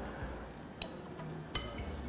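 A fork scrapes on a plate.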